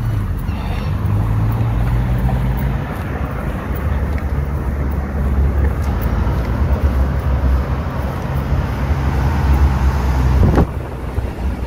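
A car drives slowly along a street some way off.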